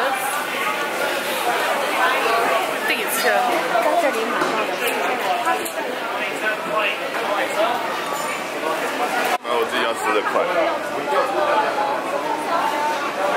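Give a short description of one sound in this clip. A crowd murmurs all around.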